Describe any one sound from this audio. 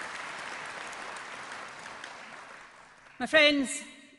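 A crowd applauds in a large hall, and the applause fades away.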